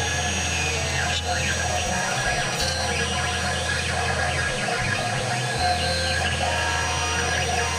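A small rotary tool whines as it grinds into wood.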